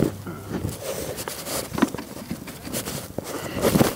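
A wooden deck chair creaks and knocks as it is adjusted.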